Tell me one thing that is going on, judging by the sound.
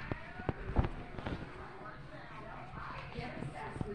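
Footsteps thud softly on carpet.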